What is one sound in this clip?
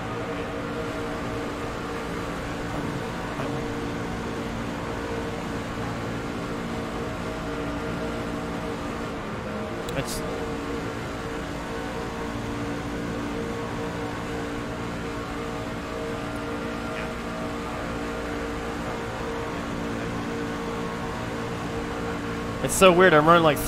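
A racing car engine drones steadily at high speed.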